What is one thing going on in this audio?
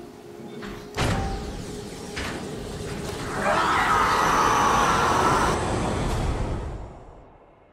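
An energy weapon fires with a loud roaring blast.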